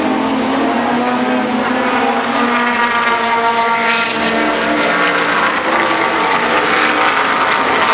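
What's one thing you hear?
A racing car engine roars loudly as the car speeds past.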